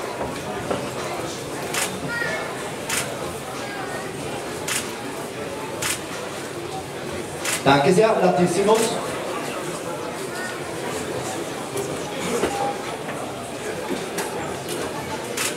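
A crowd in a large hall murmurs and calls out.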